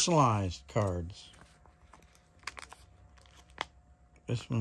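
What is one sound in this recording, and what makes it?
Fingers rustle and tap against plastic card sleeves.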